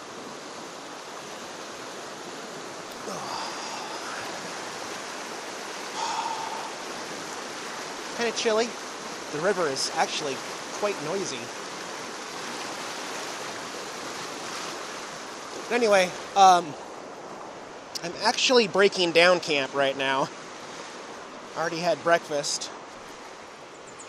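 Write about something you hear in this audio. A river rushes and churns steadily over rocks.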